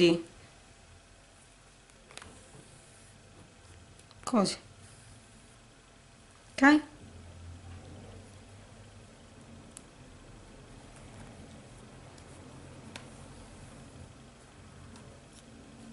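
Thread softly rustles as it is pulled through fabric.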